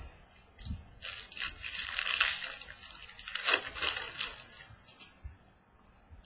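Plastic card sleeves crinkle and rustle in someone's hands.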